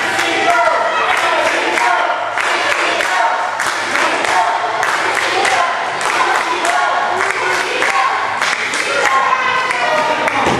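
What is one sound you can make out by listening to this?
A crowd claps in quick bursts.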